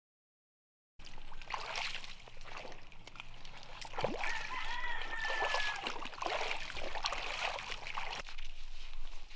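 Feet splash through a shallow rocky stream.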